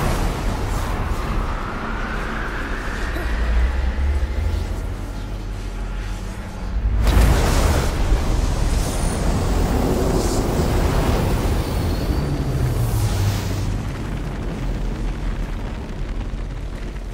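A magical energy swirls with a deep, steady rumbling hum.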